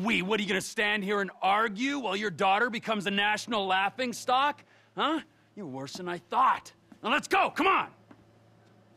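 A man shouts angrily, close by.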